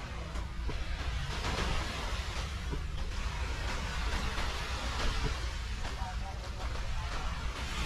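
Small waves lap gently on a sandy shore.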